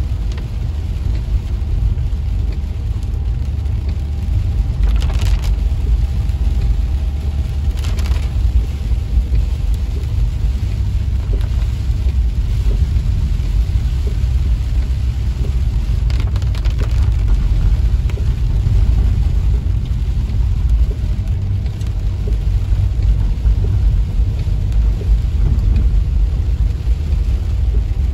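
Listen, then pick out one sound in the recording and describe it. Wind roars and buffets around a car.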